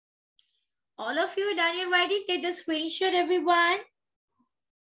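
A young girl speaks clearly in a high voice over an online call.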